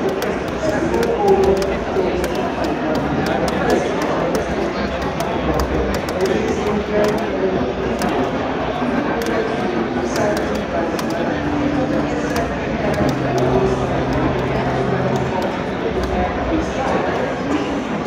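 Game music plays steadily.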